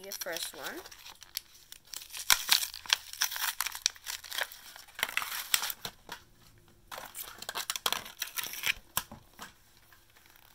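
Small plastic clicks and rustles come from handling a toy.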